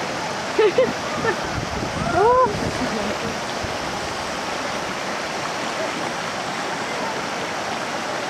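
A river rushes and splashes over rocks outdoors.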